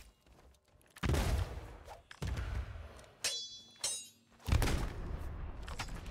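A sword swings and slashes.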